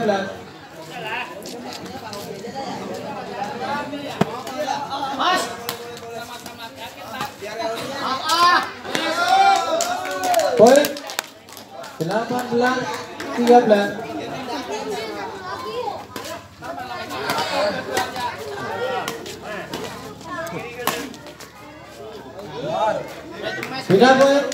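Men talk and call out with animation nearby, outdoors.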